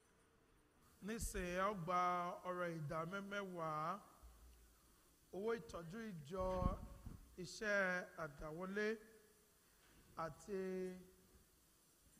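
A man sings a slow chant through a microphone in a large echoing hall.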